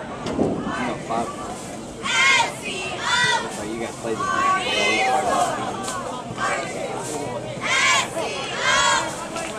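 Young players on the sidelines shout and cheer loudly outdoors.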